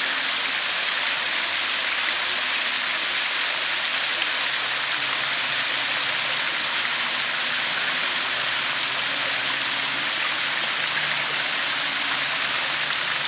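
Water cascades down stone steps and splashes into a pool.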